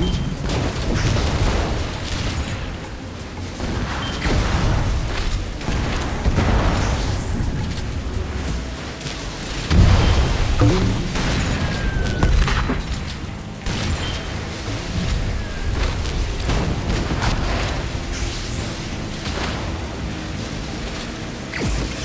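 A boat engine roars steadily as it speeds over water.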